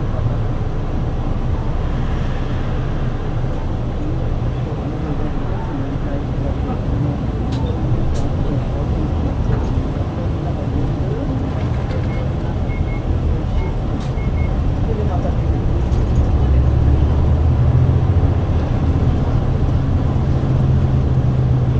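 A bus engine rumbles steadily from inside the bus, growing louder as the bus picks up speed.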